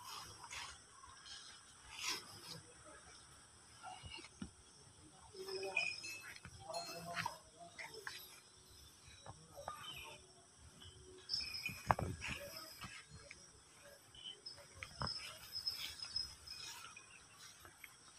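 A cow's hooves shuffle on dirt ground.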